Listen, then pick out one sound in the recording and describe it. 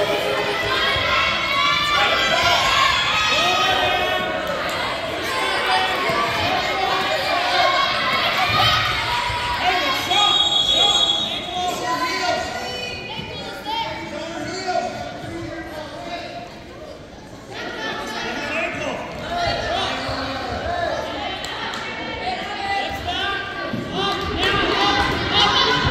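A crowd of spectators shouts and cheers in a large echoing gym.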